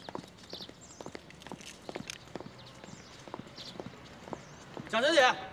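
Footsteps in hard shoes tap steadily on pavement.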